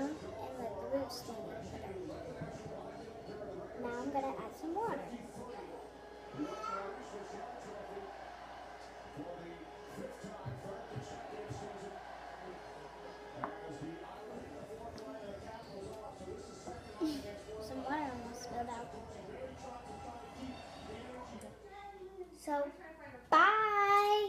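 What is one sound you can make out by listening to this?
A young girl talks close by, calmly and with animation.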